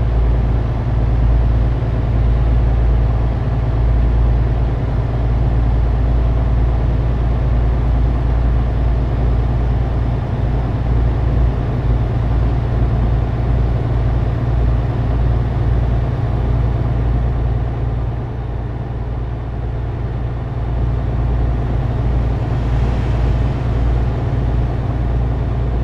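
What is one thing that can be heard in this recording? Tyres roll on the road with a constant rumble.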